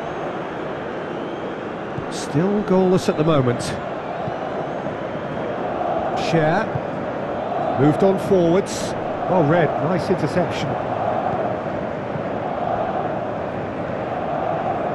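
A large crowd in a stadium roars steadily.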